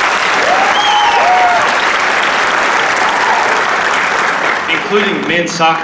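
An audience claps and cheers loudly.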